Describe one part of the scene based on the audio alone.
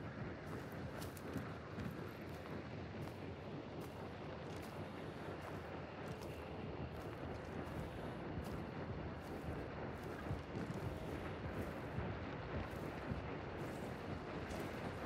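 Footsteps crunch steadily through dry grass and leaves.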